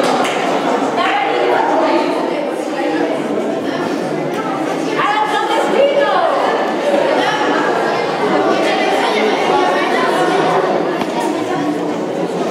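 A large choir of children and teenagers sings together in a hall.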